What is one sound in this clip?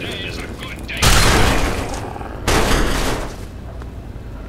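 A gun fires loud bursts of shots.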